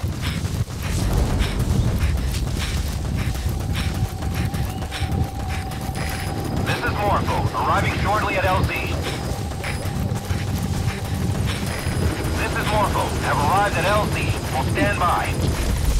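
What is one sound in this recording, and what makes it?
Footsteps run quickly through long grass.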